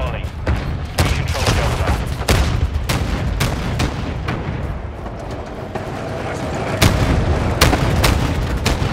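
Gunshots crack in the distance.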